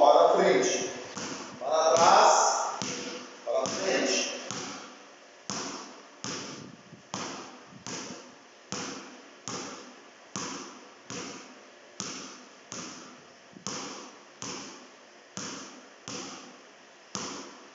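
A basketball bounces steadily on a hard floor in an echoing hall.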